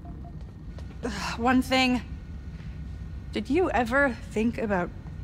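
A young woman speaks with emotion, close by.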